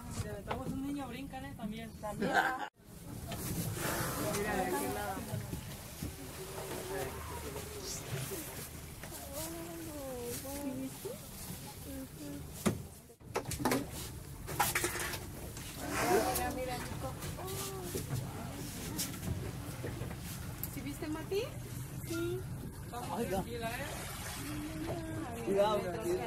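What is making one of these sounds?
Adults talk with excitement nearby.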